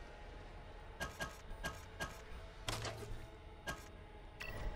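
Menu clicks tick sharply, one after another.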